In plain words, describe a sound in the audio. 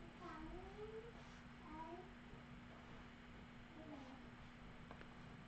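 A young woman speaks calmly through a microphone.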